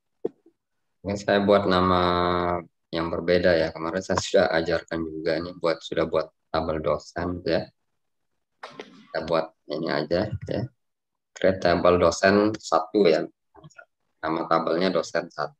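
A young man talks calmly into a microphone over an online call.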